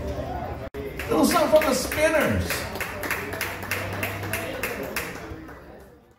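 Congas are struck by hand in a quick rhythm.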